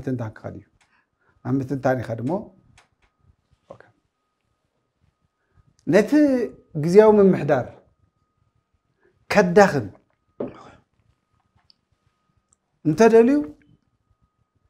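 A middle-aged man speaks calmly and with emphasis into a close microphone, pausing between phrases.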